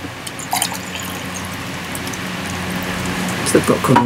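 Water pours into a glass.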